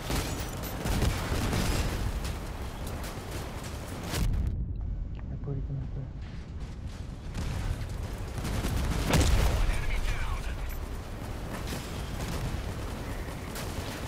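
Explosions boom loudly.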